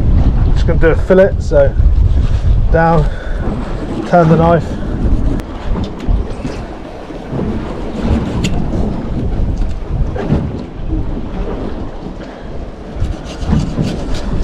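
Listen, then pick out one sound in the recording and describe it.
A knife cuts through a fish on a cutting board.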